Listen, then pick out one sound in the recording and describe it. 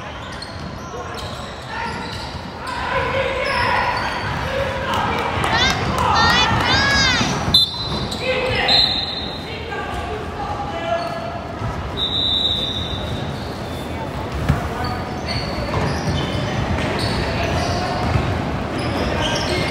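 Young boys shout and call out to each other across the court.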